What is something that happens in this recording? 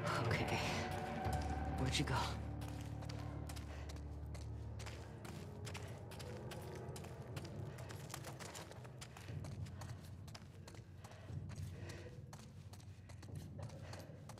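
Footsteps walk slowly on a hard, gritty floor.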